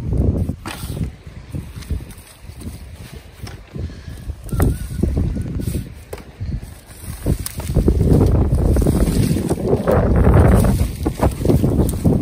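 Boots crunch over dry twigs and brush underfoot.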